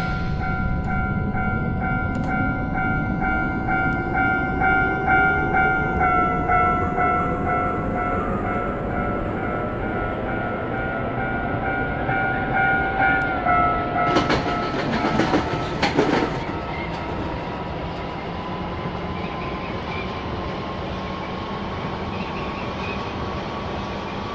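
An electric train motor whines, rising slowly in pitch.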